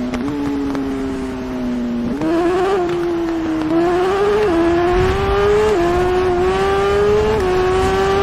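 A motorcycle engine revs high and drones, rising in pitch and dropping briefly at each gear change.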